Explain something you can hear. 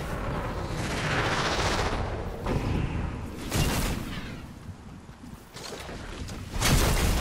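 Footsteps thud quickly on soft ground.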